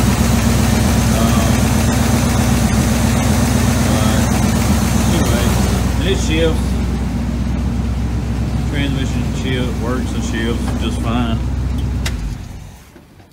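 A car engine idles with a steady low rumble, then shuts off.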